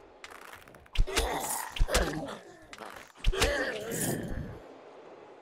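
A bow twangs sharply.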